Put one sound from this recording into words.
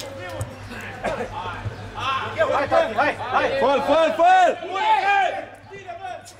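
Men shout and cheer loudly close by.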